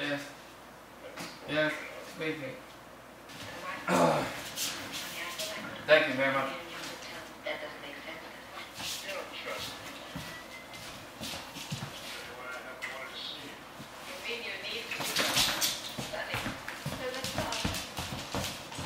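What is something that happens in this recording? A dog's paws patter and click on a hard floor.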